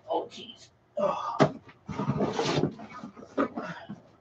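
A plastic box rattles as it is picked up.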